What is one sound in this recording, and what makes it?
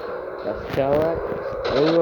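A plane's machine guns fire in rapid bursts.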